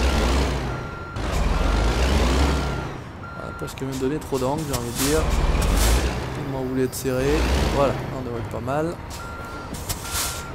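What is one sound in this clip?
A truck engine rumbles low and steady.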